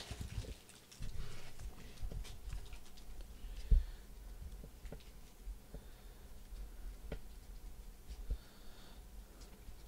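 Trading cards shuffle and tap against each other.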